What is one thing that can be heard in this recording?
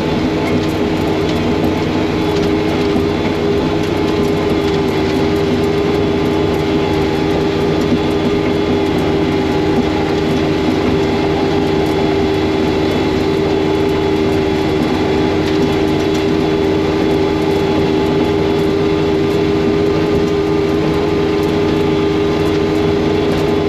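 Snow rushes and sprays from a snowblower chute.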